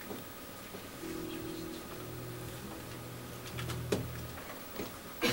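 A keyboard plays low, held notes.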